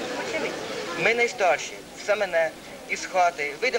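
A woman speaks loudly into a microphone.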